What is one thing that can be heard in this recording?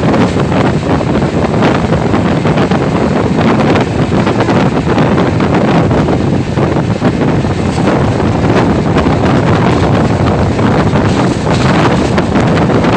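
Wind rushes loudly past the open window of a moving train.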